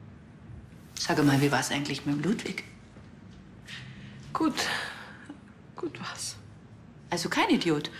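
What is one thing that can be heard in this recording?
A young woman speaks tensely and closely.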